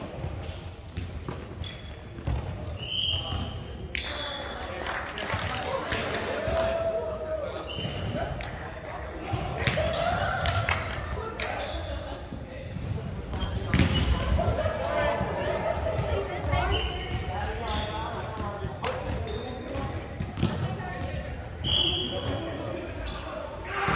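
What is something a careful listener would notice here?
A volleyball is struck and thuds, echoing in a large hall.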